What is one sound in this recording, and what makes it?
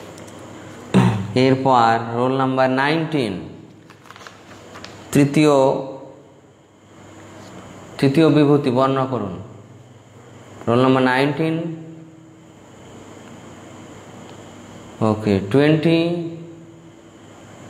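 A man sings a slow chant close to a microphone, in long drawn-out phrases with pauses between them.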